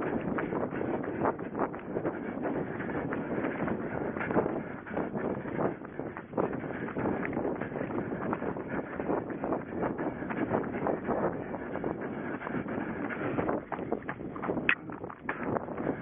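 Footsteps pound quickly through grass.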